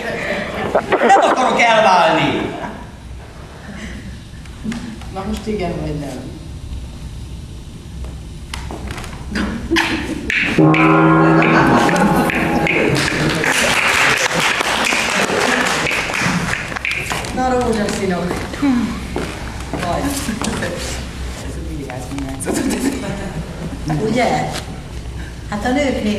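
A man speaks on a stage, heard from a distance in a large room.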